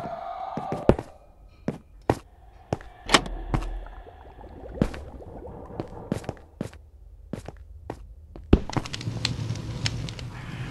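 A pickaxe knocks sharply against stone, over and over.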